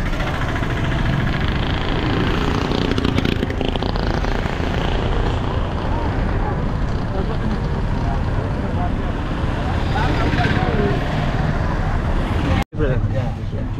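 A car engine hums and the road rumbles while driving.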